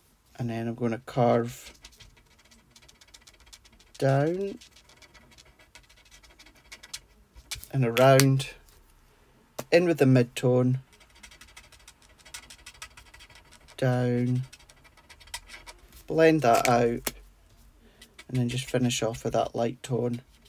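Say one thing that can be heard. A felt-tip marker scratches softly across paper.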